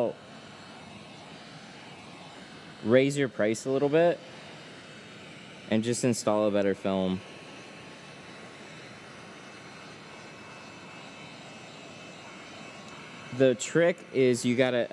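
A heat gun blows with a steady whirr.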